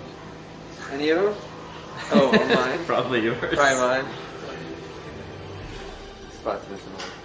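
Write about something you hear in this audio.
A young man speaks casually.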